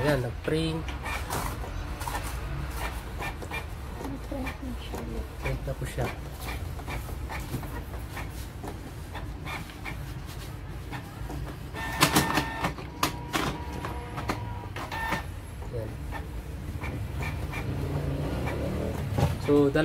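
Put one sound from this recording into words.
A printer whirs and clicks as it feeds and prints a page.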